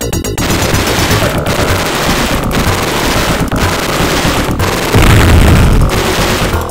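Electronic game music plays with a driving beat.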